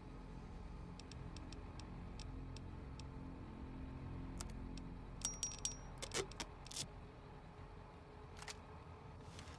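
Soft electronic clicks tick as a menu is scrolled.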